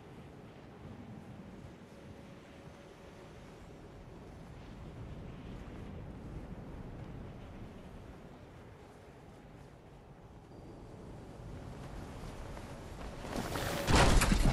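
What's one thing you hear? Wind rushes steadily during a glide through the air.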